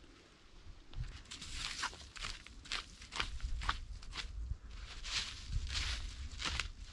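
A stick scrapes and rustles over snowy ground.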